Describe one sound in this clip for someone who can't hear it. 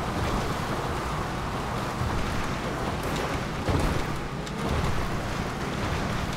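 An off-road vehicle's engine rumbles steadily.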